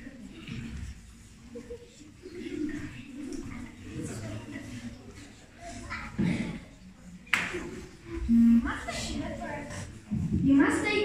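A boy speaks on a stage in a large echoing hall, heard from the audience.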